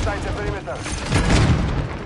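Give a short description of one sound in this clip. Gunshots ring out in loud, rapid bursts.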